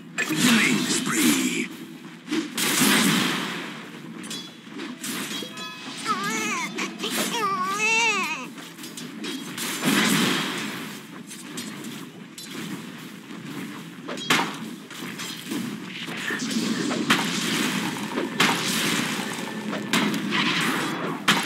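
Magic spells crackle and weapons clash in a fast fantasy battle.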